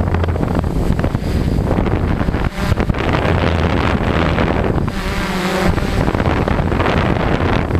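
Drone propellers buzz steadily close by.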